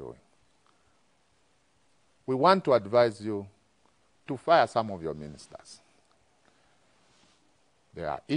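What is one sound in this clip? A man speaks clearly and with emphasis into a close microphone, in short bursts with pauses.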